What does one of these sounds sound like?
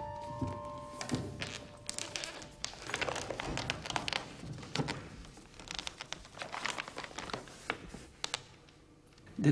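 Stiff pages rustle and thud as a large book is opened and leafed through.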